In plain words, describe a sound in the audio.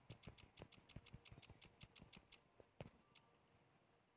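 Short interface clicks tick in quick succession.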